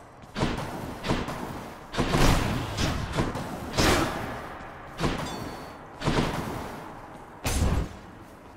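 Magical whooshing dashes burst out again and again, each fading quickly.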